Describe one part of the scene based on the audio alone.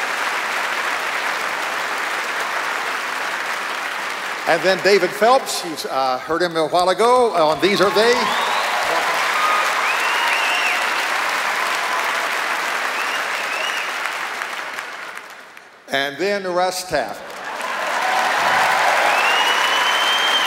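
A large audience applauds and cheers in a big hall.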